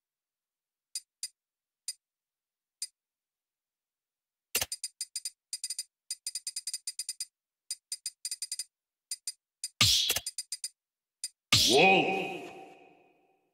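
Game menu sounds click and blip in quick bursts.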